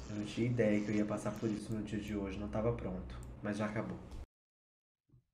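A young man talks quickly and with animation through a microphone.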